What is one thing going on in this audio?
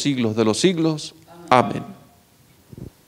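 A man sings through a microphone in an echoing room.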